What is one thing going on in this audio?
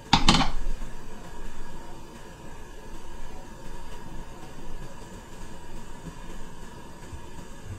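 A spatula scrapes and stirs batter in a pan.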